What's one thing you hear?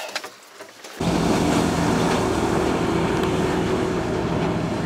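A motorboat engine roars as the boat speeds across the water.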